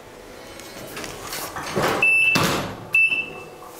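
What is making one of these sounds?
Elevator doors slide shut with a rumble.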